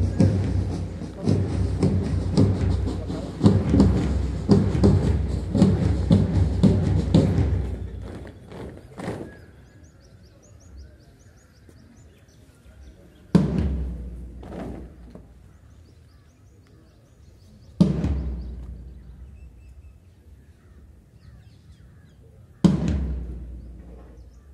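Many boots stamp on the ground together in a marching rhythm.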